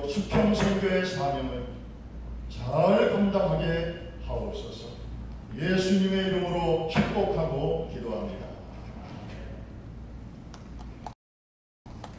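A man speaks slowly and solemnly through a microphone in a large echoing hall.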